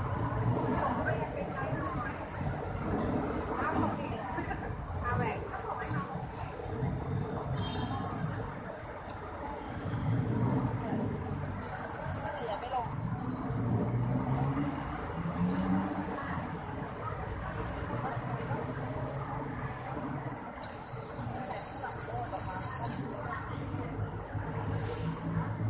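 City traffic rumbles steadily nearby outdoors.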